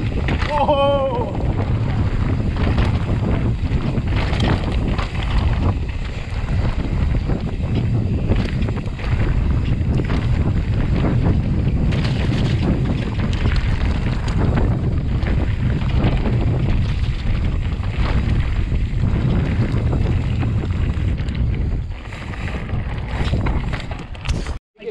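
Bike tyres crunch and roll over a dirt trail.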